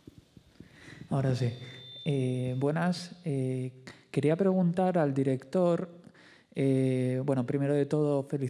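A young man speaks calmly into a handheld microphone.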